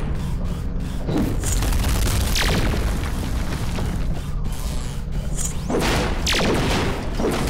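Laser blasts fire and crackle.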